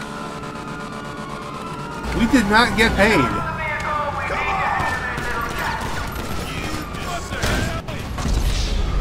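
Police sirens wail and warble.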